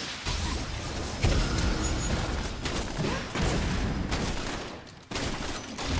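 Video game combat effects clash and burst in quick succession.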